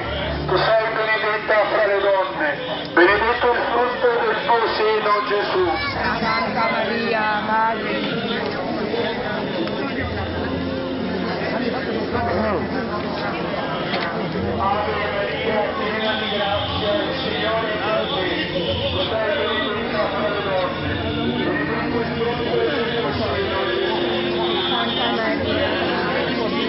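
A crowd of men and women chatter outdoors nearby.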